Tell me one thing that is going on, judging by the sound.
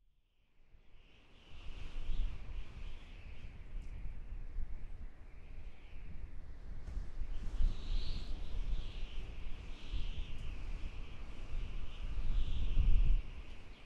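Wind blows in gusts across open ground outdoors.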